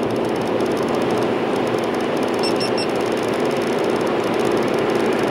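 Tyres roll on the road surface with a steady rumble.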